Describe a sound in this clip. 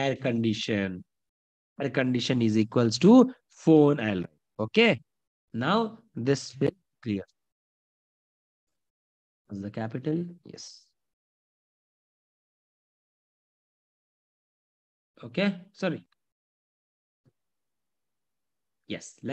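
A man speaks calmly through a microphone, explaining in short bursts with pauses.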